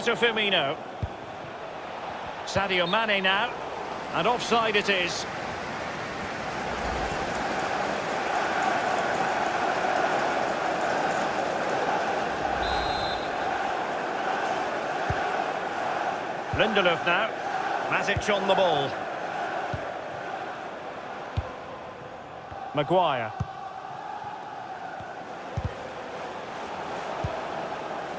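A stadium crowd roars steadily, swelling loudly for a while.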